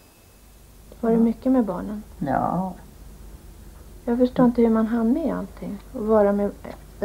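An elderly woman speaks calmly and slowly, close by.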